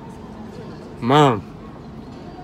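A man hums with pleasure, close by.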